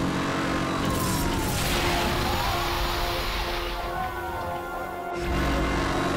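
A police car crashes on a spike strip.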